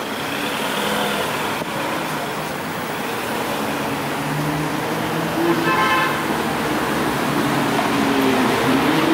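An electric bus hums as it pulls up close.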